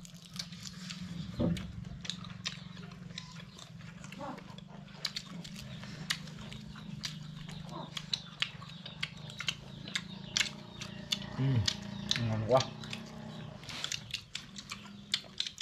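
Young men chew crunchy food with loud smacking and crunching.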